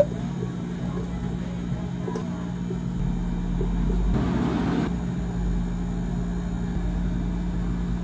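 A thick drink pours softly into a cup.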